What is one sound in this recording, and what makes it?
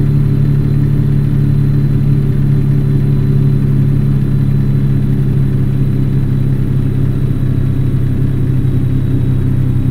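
A truck engine hums low and steady while cruising.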